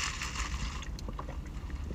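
A man sips a drink through a straw.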